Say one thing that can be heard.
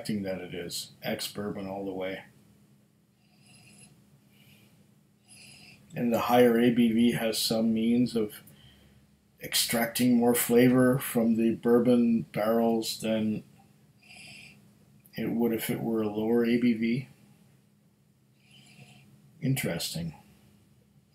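A middle-aged man talks calmly and close to a microphone, with pauses.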